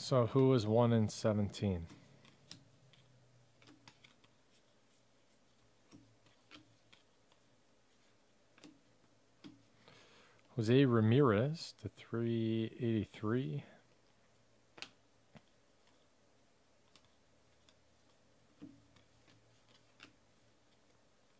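Trading cards slide and flick softly against each other in hands.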